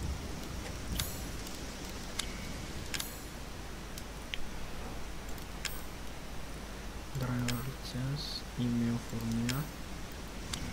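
Soft clicks tick now and then.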